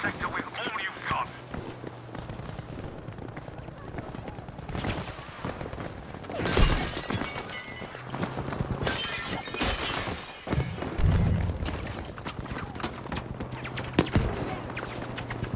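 Footsteps thud on the ground and wooden floors.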